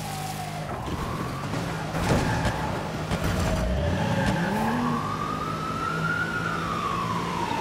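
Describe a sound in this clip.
A car engine revs and roars as the car speeds up.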